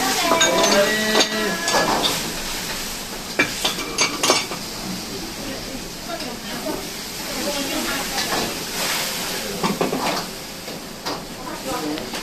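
A wok scrapes and clanks on a burner.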